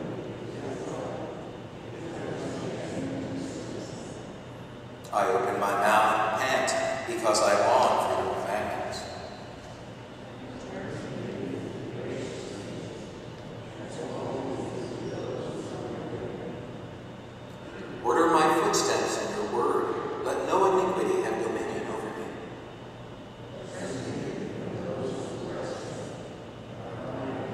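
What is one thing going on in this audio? A man reads aloud through a microphone in a large echoing hall.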